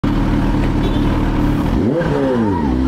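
A motorcycle engine idles with a low, steady rumble close by.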